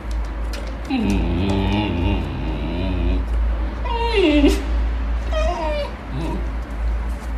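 A dog whines and howls in long wavering cries.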